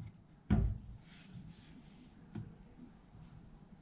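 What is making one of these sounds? A wooden plank knocks against metal clamps.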